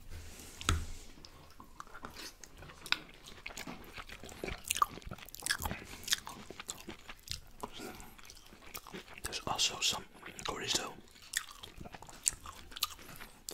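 A man tears apart roast chicken with his fingers, close to a microphone.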